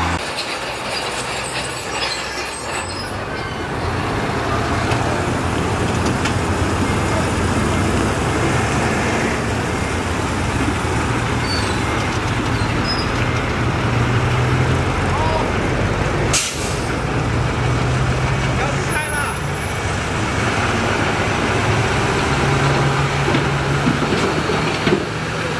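A bulldozer engine rumbles steadily and revs up and down.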